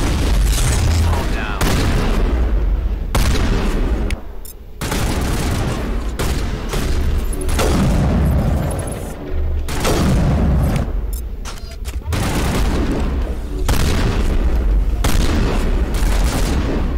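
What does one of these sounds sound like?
Gunfire bursts out in rapid volleys.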